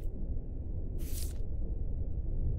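A tablet is picked up with a short swish.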